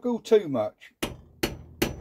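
A small hammer taps sharply on metal.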